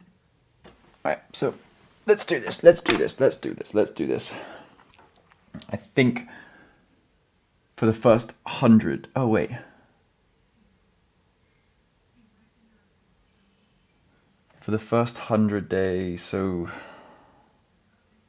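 A young man talks calmly close by, in bursts with pauses.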